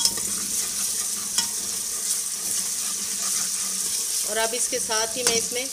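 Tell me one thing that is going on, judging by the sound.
A metal spoon scrapes against a metal pot.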